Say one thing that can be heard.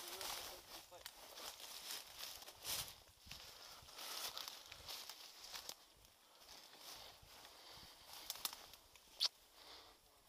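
Leaves and twigs rustle and crackle as someone moves through dry undergrowth.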